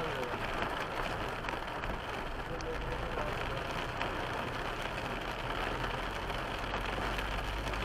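Rain drums steadily on a car's roof and windscreen.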